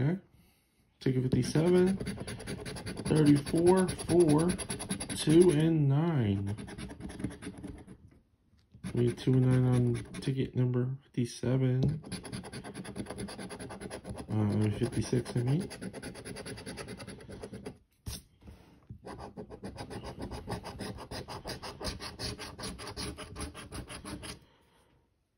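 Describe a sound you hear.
A coin scratches rapidly across a scratch card.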